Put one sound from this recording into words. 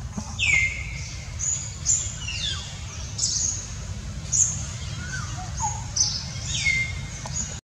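A baby monkey squeals shrilly, over and over.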